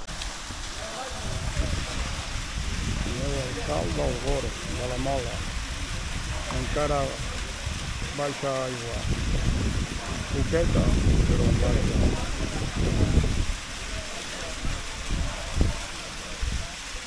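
Young people call out and shout at a distance outdoors.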